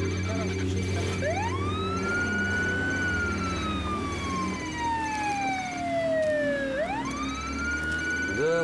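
A van engine hums as the vehicle drives off down the road.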